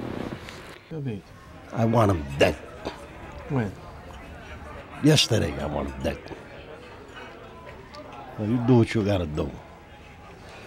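A man speaks in a low, quiet voice.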